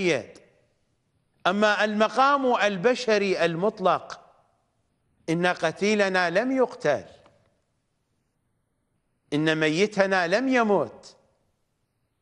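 A middle-aged man speaks calmly and deliberately into a close microphone, pausing between phrases.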